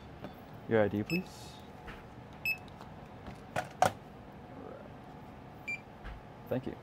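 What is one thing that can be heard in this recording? A barcode scanner beeps.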